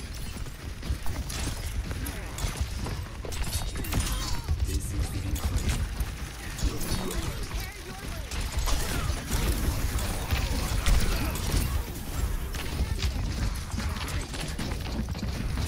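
Explosions burst loudly.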